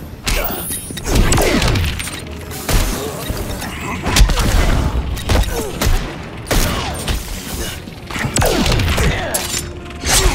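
Punches and kicks land with heavy thuds and cracks.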